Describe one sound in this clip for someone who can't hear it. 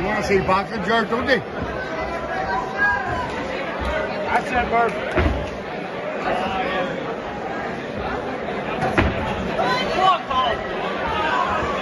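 A ringside crowd shouts and cheers in a large hall.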